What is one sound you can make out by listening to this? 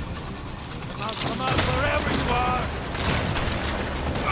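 Explosions boom and roar.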